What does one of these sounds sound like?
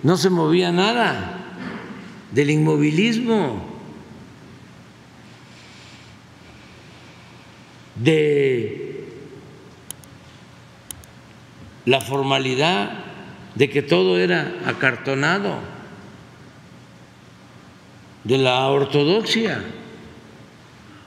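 An elderly man speaks firmly into a microphone in short bursts, with pauses between.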